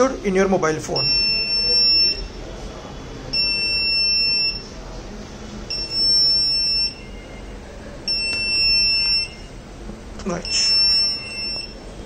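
An electronic buzzer beeps in repeated long, steady tones.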